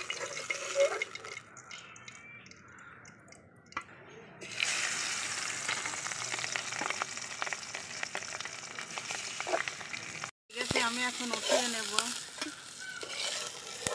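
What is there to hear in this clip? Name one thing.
A metal spatula scrapes and clanks against a metal pan.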